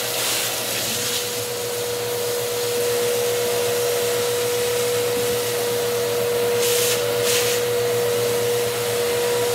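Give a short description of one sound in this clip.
A vacuum cleaner motor whines steadily and loudly.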